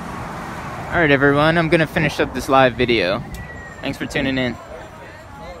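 Men talk loudly outdoors nearby.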